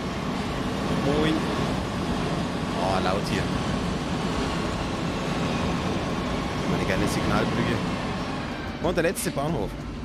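Train wheels squeal briefly on the rails.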